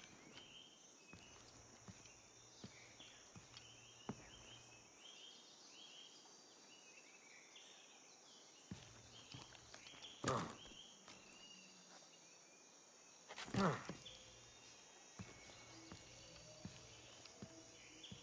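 Leaves rustle as a climber moves through tree branches.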